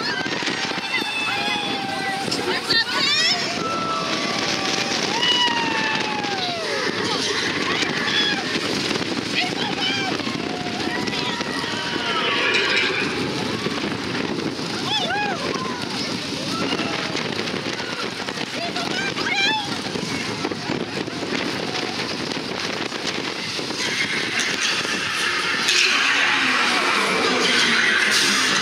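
A roller coaster rattles and rumbles along its track.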